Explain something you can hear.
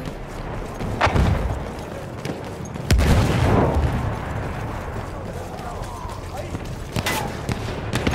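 Explosions boom nearby with heavy rumbling.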